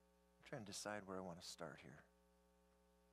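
A middle-aged man speaks calmly through a microphone in a large room.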